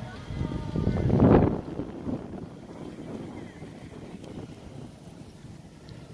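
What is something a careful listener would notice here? A golf cart hums past on the road.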